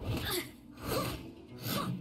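A sword swishes through the air with a magical whoosh.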